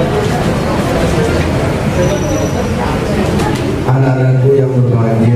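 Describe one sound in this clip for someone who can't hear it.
A middle-aged man speaks with animation into a microphone, heard through loudspeakers.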